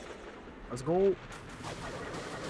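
A blow strikes with a sharp metallic clang.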